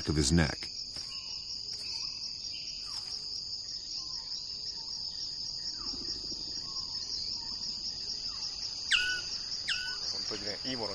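A bird gives short sharp calls.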